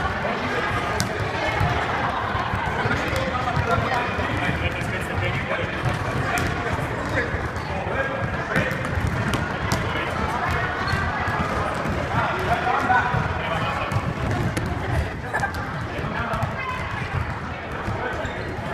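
Many children chatter and call out in a large echoing hall.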